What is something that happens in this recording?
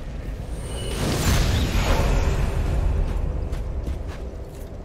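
A deep magical whoosh swells and slowly fades.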